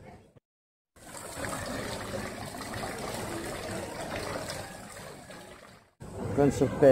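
Water trickles gently into a pond.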